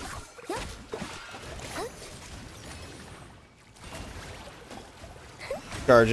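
Magic attacks whoosh and crackle in quick bursts.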